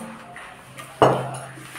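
Utensils clink against a plate.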